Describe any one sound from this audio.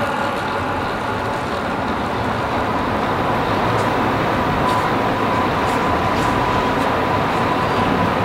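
A bicycle whirs along a track in a large echoing hall.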